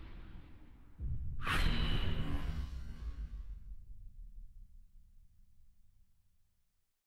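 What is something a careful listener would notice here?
A portal bursts shut with a loud whoosh that rumbles and fades.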